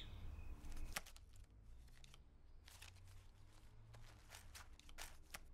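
A hand rummages and rustles inside a cloth bag.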